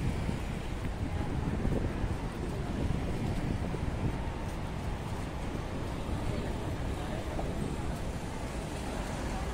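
Footsteps of people walking sound on pavement.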